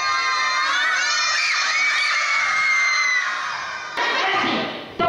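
Young children shout and laugh excitedly close by.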